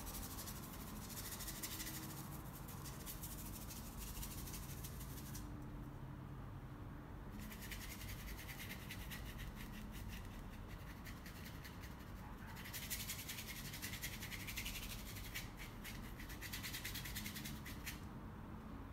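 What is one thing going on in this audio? A paintbrush scratches and brushes across canvas.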